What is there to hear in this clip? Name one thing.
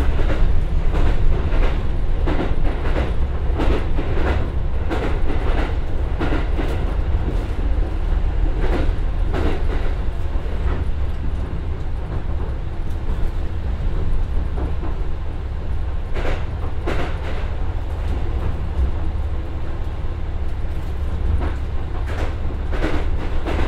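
A train's diesel engine drones steadily.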